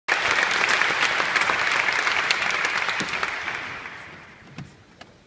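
An audience applauds in a large hall and the clapping fades.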